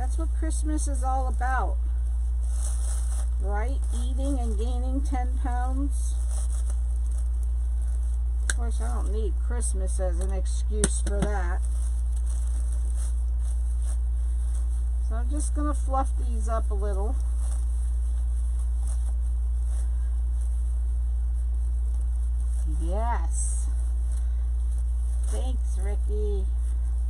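Tinsel and mesh rustle and crinkle as hands handle them.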